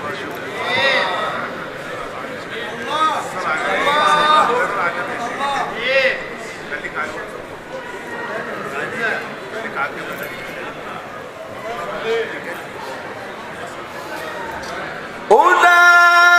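A crowd of men murmurs and chatters in an echoing hall.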